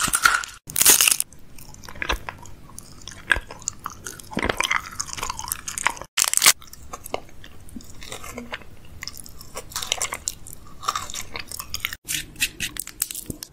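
A wrapper crackles close to a microphone.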